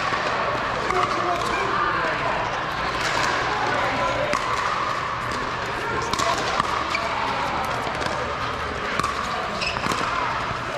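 Paddles hit a plastic ball with sharp pops that echo in a large hall.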